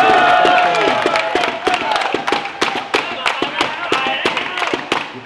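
Players clap and slap hands together.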